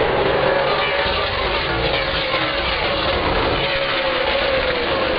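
A race car roars past up close, its engine pitch dropping as it passes.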